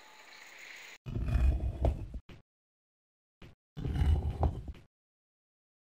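A heavy wooden wheel mechanism rumbles and grinds.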